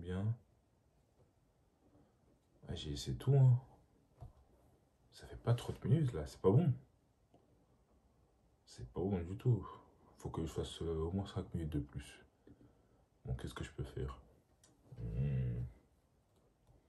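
A young man talks casually in short bursts, close by.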